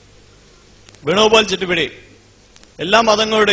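A man speaks loudly into a microphone over a hall loudspeaker.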